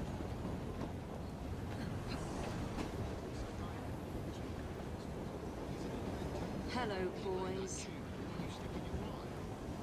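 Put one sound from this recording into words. Footsteps thud on a wooden train roof.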